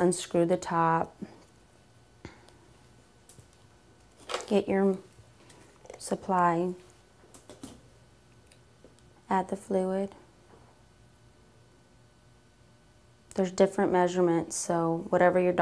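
A young woman speaks calmly and clearly into a close microphone, pausing between phrases.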